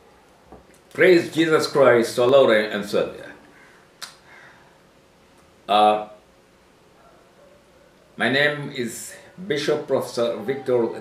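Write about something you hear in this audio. An elderly man speaks calmly and closely, in short bursts with pauses.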